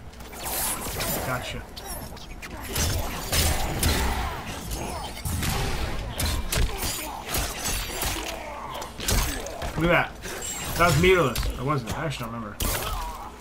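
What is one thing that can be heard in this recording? A fighter grunts and shouts with each strike.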